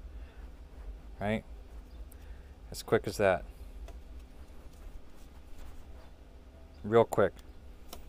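A rope rustles softly as hands tie a knot.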